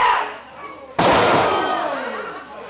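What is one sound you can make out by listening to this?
A wrestler slams onto a ring mat with a loud thud.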